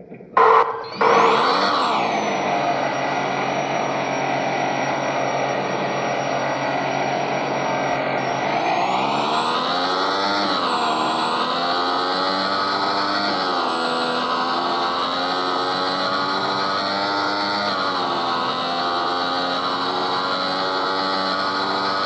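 A video game motorcycle engine idles and then revs up, its pitch rising as it speeds up.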